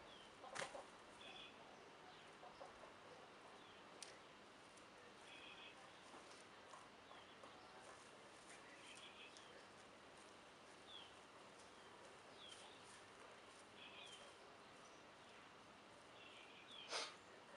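Weeds rustle and tear as they are pulled from the soil by hand.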